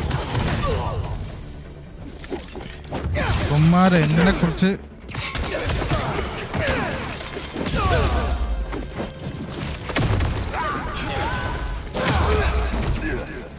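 Punches and kicks thud in a fight.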